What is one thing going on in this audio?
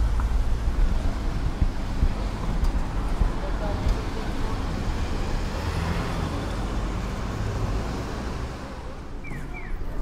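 Small cars drive past.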